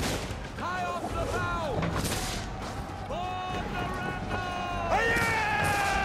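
Men shout and yell in a battle.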